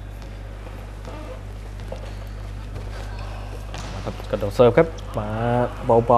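Players strike a volleyball in a rally in an echoing sports hall.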